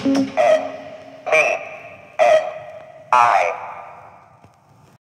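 Music plays from a record in short, repeated chord bursts that ring out and fade.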